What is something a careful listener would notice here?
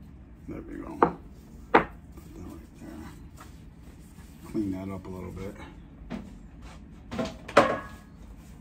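A knife taps on a wooden cutting board.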